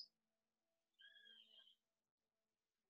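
A man sings softly.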